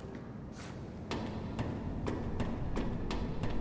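Hands and boots clank on the rungs of a metal ladder.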